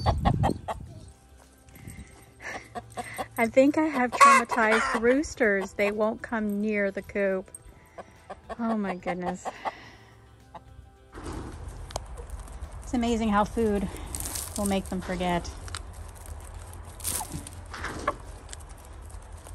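Hens cluck nearby.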